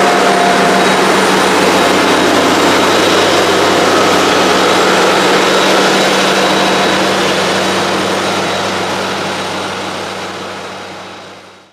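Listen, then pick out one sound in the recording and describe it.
A harvester engine roars steadily and slowly fades as the machine drives away.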